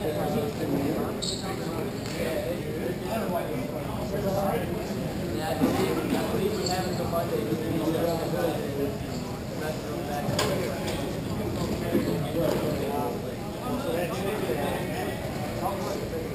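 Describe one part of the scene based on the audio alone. Skate wheels roll across a hard floor.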